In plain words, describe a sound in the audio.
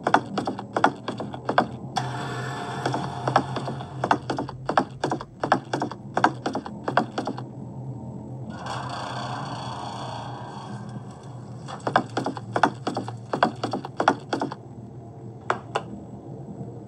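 Footsteps thump quickly across a wooden floor.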